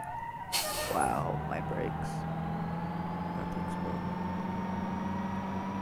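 A heavy engine revs up.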